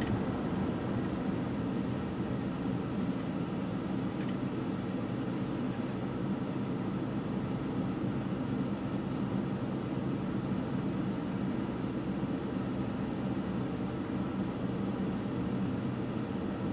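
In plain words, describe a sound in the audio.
A car engine idles steadily, heard from inside the car.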